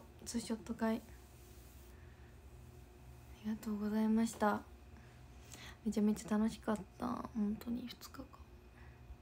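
A young woman talks in short bursts, close to the microphone.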